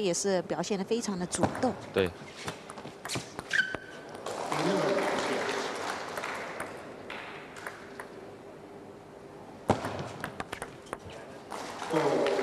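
A table tennis ball clicks against paddles and the table.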